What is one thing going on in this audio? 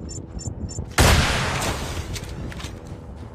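A rocket launcher fires with a loud, booming blast.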